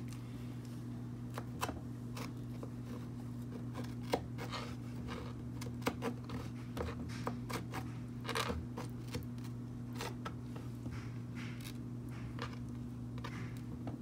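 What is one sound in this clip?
A knife taps and clicks on a wooden board as it slices.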